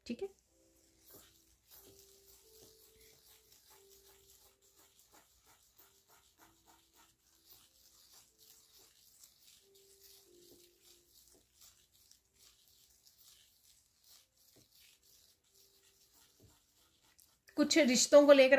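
Fingers brush and scrape softly through fine sand.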